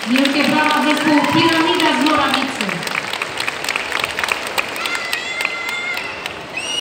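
A crowd of young children shout and cheer in a large echoing hall.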